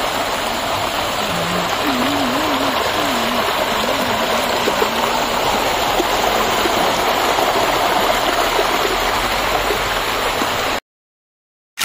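Water rushes steadily over rocks in a stream.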